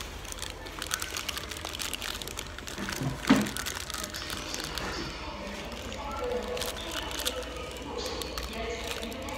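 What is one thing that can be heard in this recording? Paper wrapping crinkles and rustles.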